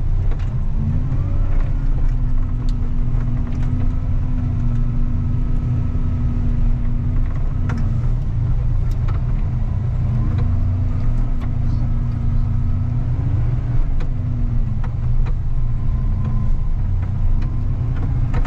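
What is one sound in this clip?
A snowplow engine rumbles steadily and its pitch rises and falls.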